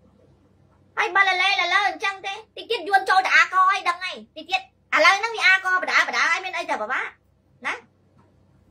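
A young woman speaks with animation into a close microphone.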